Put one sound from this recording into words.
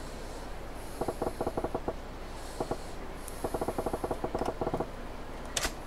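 Short electronic blips tick rapidly in quick bursts.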